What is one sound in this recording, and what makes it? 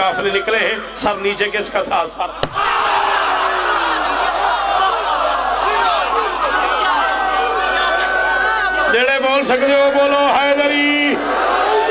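A man speaks loudly and passionately through a microphone.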